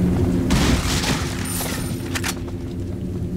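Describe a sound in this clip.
A knife smashes through a wooden crate.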